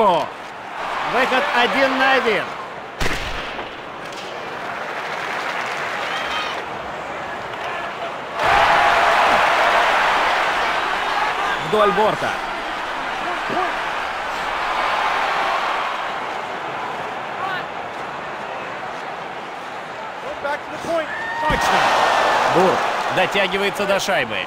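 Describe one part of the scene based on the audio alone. A crowd roars steadily in a large arena.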